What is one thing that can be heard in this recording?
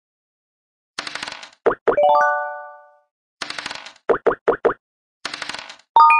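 Dice rattle as they roll.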